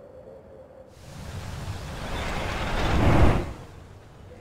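Artillery shells explode with a deep rumbling boom.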